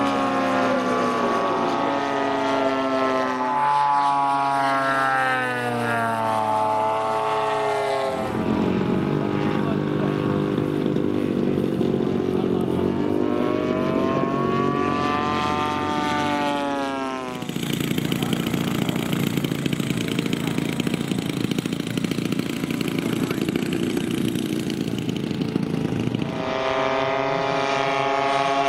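A model plane's engine drones loudly, rising and falling in pitch as it flies past.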